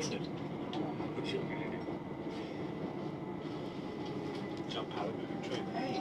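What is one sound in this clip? Wheels click and squeal on the rails.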